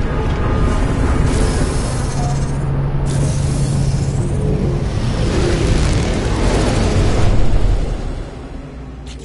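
A spaceship engine roars loudly and then fades away.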